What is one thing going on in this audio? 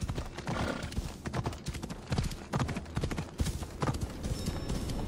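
Horse hooves thud on the ground at a gallop.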